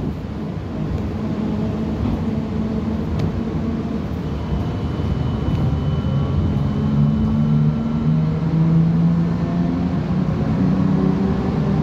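Traffic passes by on a road outside.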